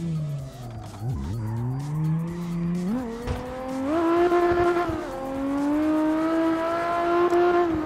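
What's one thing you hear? Tyres screech on the track.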